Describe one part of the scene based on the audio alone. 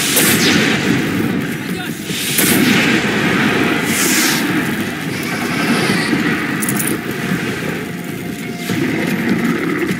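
Fires roar and crackle loudly.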